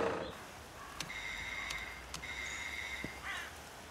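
A doorbell rings with a steady electronic tone.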